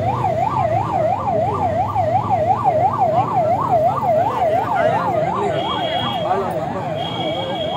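A crowd of men and women talk and murmur all around, close by.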